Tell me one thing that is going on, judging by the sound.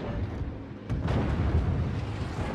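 Anti-aircraft guns fire in rapid bursts.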